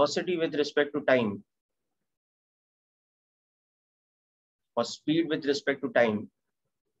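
A man speaks calmly into a microphone, heard as if through an online call.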